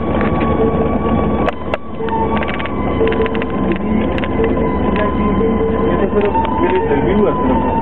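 Tyres rattle and crunch over a rough gravel road.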